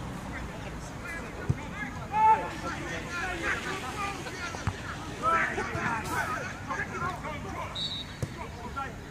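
Men shout to each other across an outdoor field.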